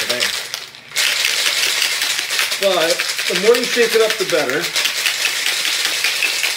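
Ice rattles hard inside a metal cocktail shaker.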